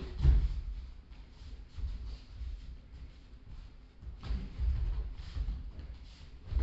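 Bare feet thud and shuffle on a padded mat.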